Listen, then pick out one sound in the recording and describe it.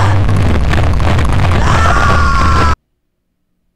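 A distorted, harsh scream blares loudly.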